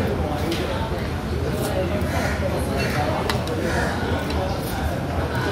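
A busy crowd murmurs and chatters in a large echoing hall.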